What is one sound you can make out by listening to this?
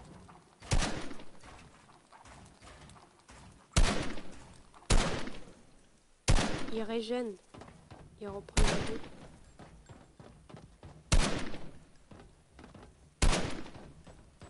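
A gun fires single loud shots every few seconds, each followed by a short echo.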